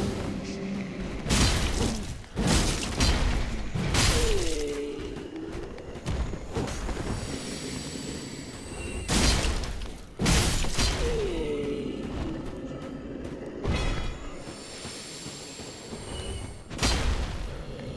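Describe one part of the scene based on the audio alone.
A sword clashes and strikes with sharp metallic blows.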